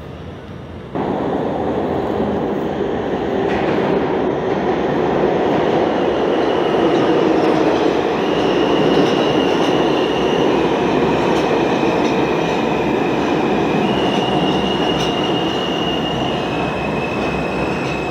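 A subway train rumbles loudly into an echoing station.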